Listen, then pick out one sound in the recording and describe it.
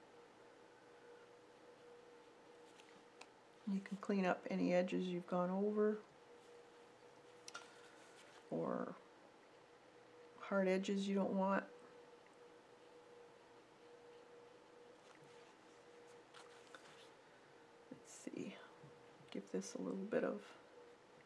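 A paintbrush strokes softly on paper.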